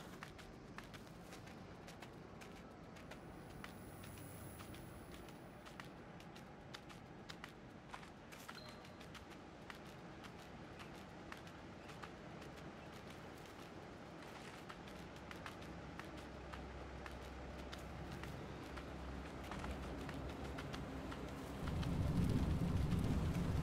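Soft footsteps of a fox patter quickly over the ground.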